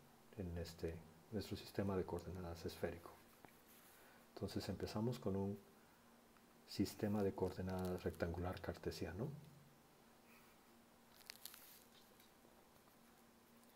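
A pencil scratches across paper as lines are drawn.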